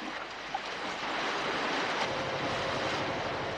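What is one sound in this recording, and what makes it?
Waves wash against rocks.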